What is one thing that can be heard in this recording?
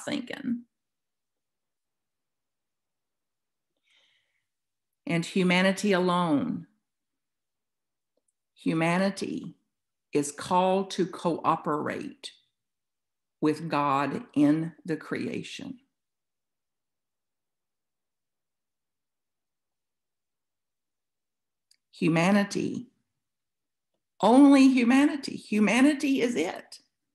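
An elderly woman speaks with animation over an online call, in bursts with pauses.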